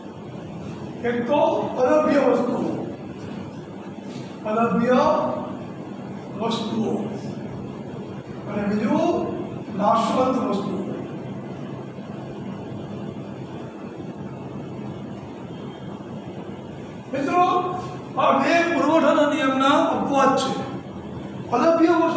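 A middle-aged man speaks calmly in short phrases, as if teaching, close by.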